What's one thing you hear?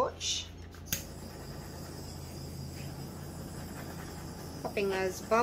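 A heat gun blows with a steady whirring hiss.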